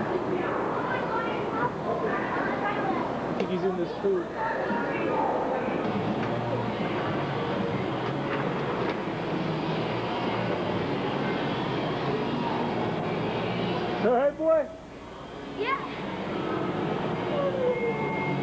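Many children shout and chatter in a large, echoing hall.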